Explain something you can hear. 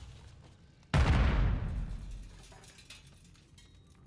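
A smoke grenade bursts with a loud hiss.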